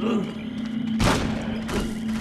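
A blade slashes through the air with a sharp whoosh.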